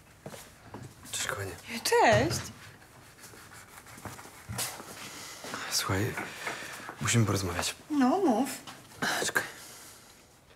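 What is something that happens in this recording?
A man talks calmly indoors.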